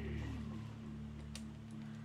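Small plastic bricks click and rattle under a hand.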